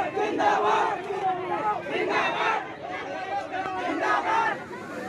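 A crowd of men shout loudly and angrily outdoors, close by.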